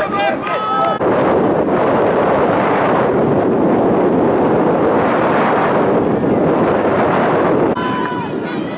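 Strong wind gusts loudly outdoors.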